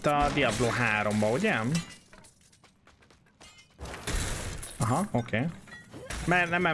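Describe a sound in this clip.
Swords clash and spells burst in a battle.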